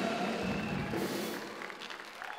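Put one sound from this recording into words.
Drums crash loudly and stop.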